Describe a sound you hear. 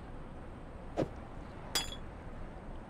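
A game item clunks as it is picked up and dropped into place.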